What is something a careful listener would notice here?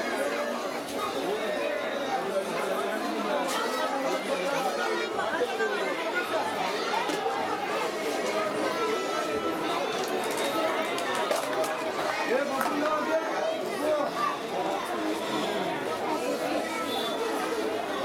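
A crowd of men talks and murmurs all around outdoors.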